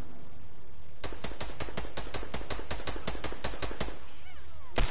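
Quick clicking game sounds tick rapidly in a burst.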